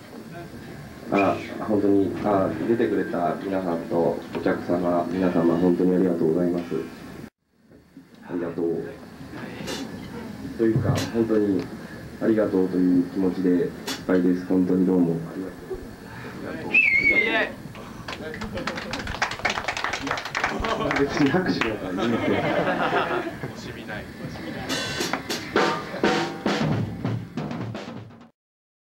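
A man speaks into a microphone through loudspeakers.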